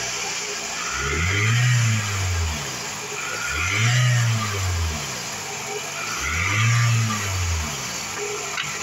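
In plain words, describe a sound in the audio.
A car engine revs up and falls back three times.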